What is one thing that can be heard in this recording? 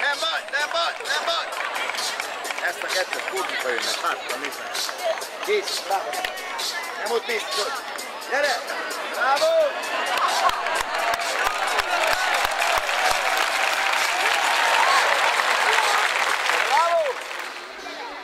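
A crowd claps along in quick, steady beats.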